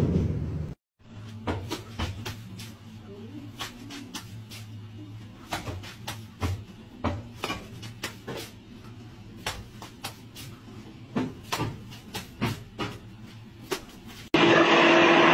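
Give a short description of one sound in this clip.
Wet mortar slaps against a brick wall again and again.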